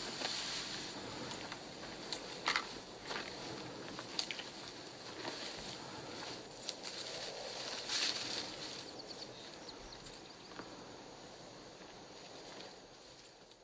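Wind rustles through tall dry grass.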